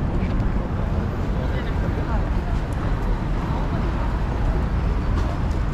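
City traffic hums steadily in the distance.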